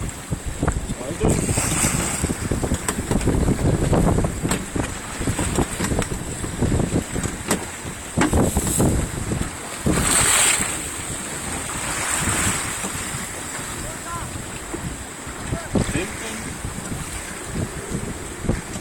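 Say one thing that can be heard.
Waves slap and splash against a boat's hull.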